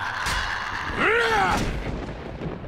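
A small creature shrieks in pain.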